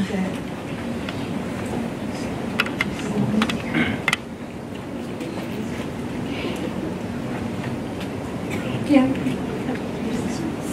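Voices of men and women murmur in a room as people chat among themselves.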